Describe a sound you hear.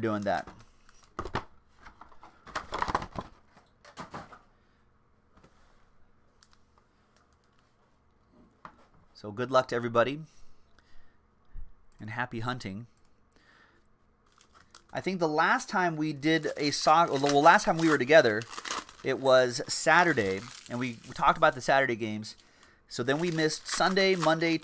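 Foil card packs rustle and crinkle in hands.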